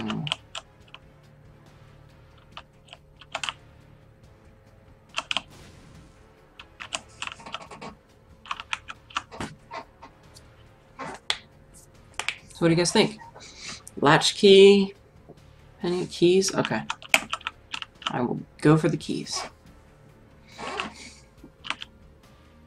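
Short video game sound effects pop and click.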